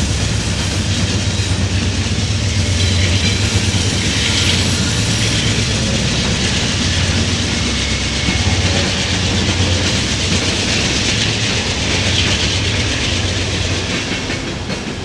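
Diesel locomotive engines rumble loudly as they pass close by.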